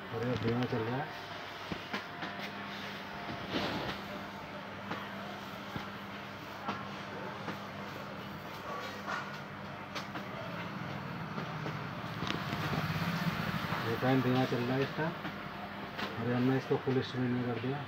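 A ceiling fan whirs steadily.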